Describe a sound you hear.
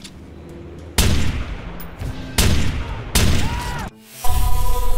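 Loud rifle shots boom one after another, each with a ringing echo.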